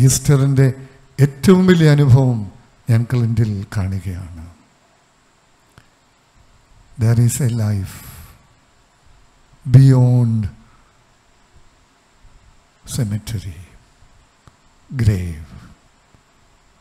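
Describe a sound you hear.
An elderly man speaks with animation into a microphone, in bursts with pauses.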